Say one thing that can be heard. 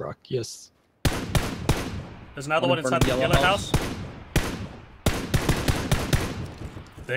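Rifle shots crack in quick bursts, ringing out after each shot.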